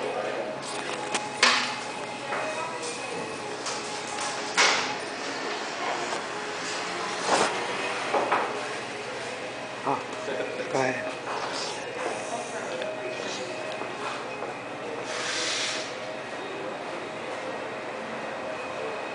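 Several adults chat indoors in a busy room.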